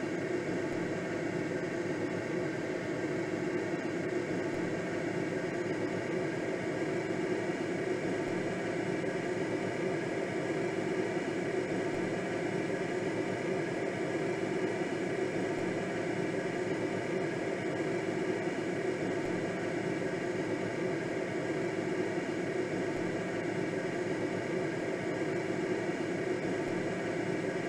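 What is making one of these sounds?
Wind rushes steadily past a glider in flight.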